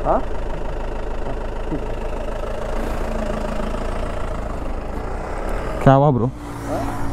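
A motorcycle engine idles steadily nearby.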